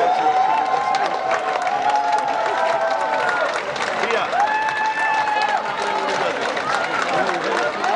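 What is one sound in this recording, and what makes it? Drums beat steadily under a brass band.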